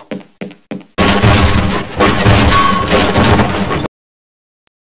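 A crowbar smashes a wooden crate.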